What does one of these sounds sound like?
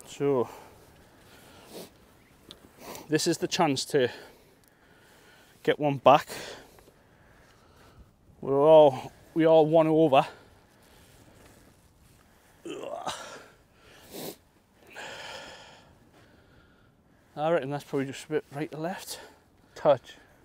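A man talks nearby with animation, in short bursts.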